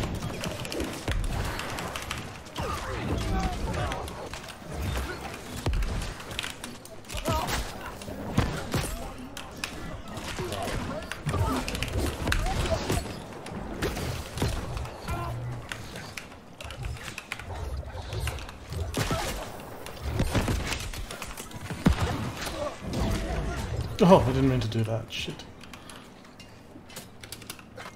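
Spells and weapons strike in repeated bursts and thuds.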